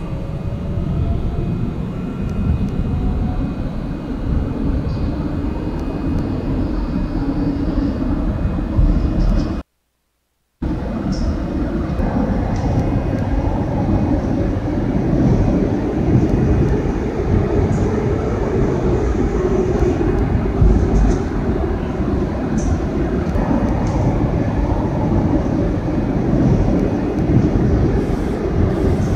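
A subway train rumbles loudly through a tunnel.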